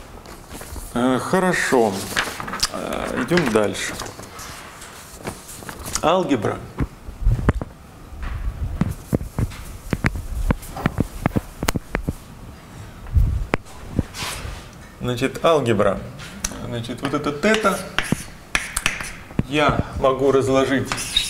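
A young man speaks calmly, explaining.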